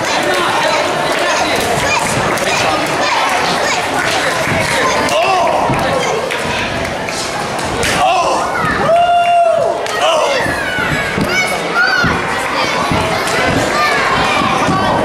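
A crowd cheers, chants and shouts in a large echoing hall.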